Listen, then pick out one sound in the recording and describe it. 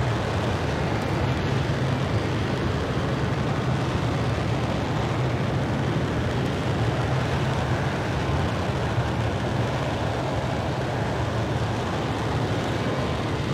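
Wind rushes loudly past a plane.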